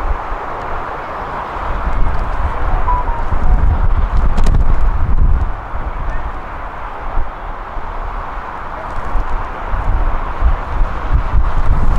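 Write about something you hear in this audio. Players shout to each other in the distance.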